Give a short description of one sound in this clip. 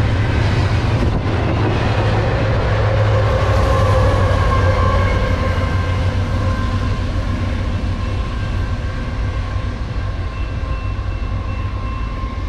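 Diesel locomotive engines drone loudly as they pass and then fade into the distance.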